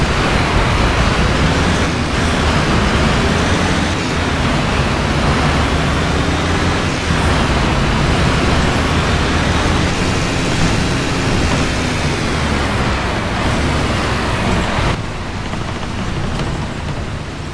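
A bus engine hums steadily while driving.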